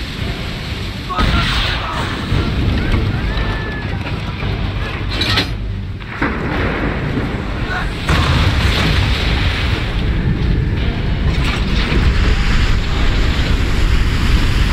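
Strong wind howls steadily.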